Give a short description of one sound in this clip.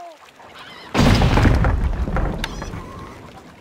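A wooden structure crashes down and breaks apart.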